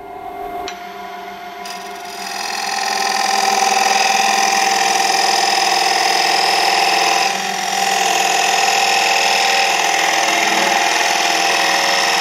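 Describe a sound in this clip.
A turning gouge cuts into a spinning wooden bowl blank on a lathe.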